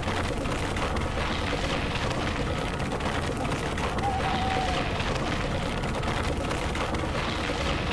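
Tyres rumble over a rough snowy road.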